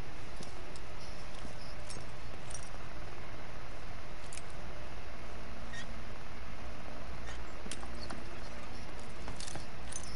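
A lock pick scrapes and clicks faintly inside a lock.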